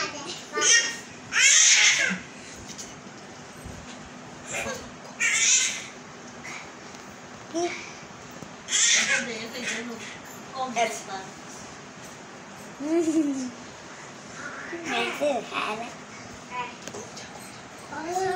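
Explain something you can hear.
A young girl laughs close by.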